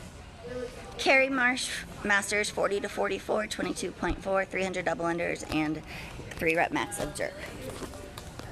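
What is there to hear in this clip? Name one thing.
A woman talks close to a phone, with animation.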